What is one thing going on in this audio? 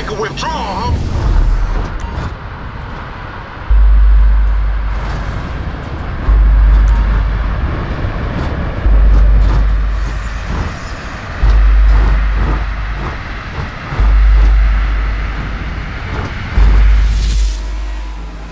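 A sports car engine roars as the car speeds along.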